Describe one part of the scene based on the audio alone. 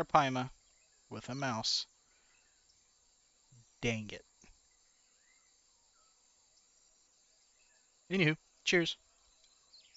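A man speaks into a close microphone in short, casual bursts.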